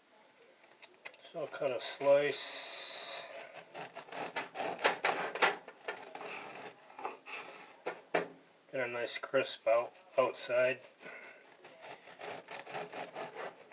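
A bread knife saws through a crusty loaf.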